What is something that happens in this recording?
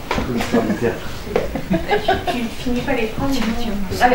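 A woman laughs nearby.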